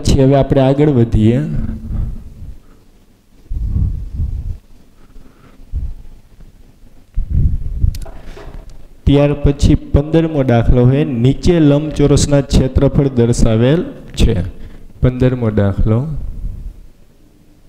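A young man lectures calmly and clearly into a microphone.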